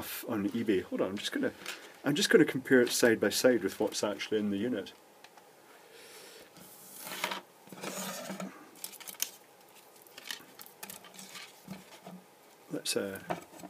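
A plastic light strip rustles and clicks as it is handled.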